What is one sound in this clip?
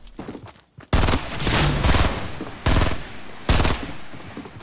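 A gun fires in rapid bursts of loud shots.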